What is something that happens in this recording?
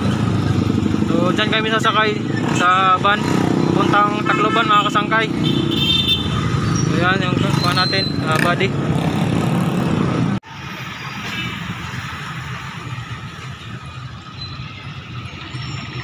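Motorcycle engines rumble past nearby.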